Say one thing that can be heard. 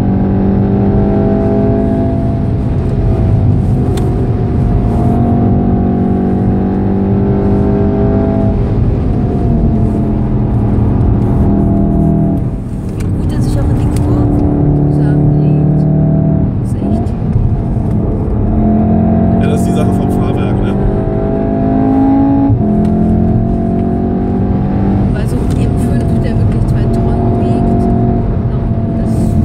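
Wind rushes past a fast-moving car.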